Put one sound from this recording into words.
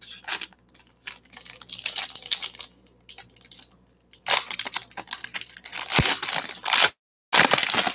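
Foil wrappers crinkle and rustle as they are torn open and handled.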